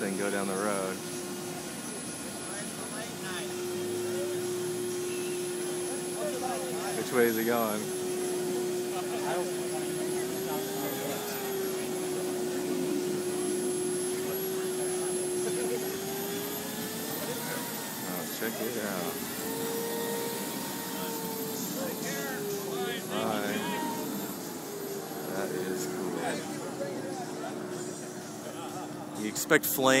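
A car's turbine engine whines steadily, rising and falling in pitch.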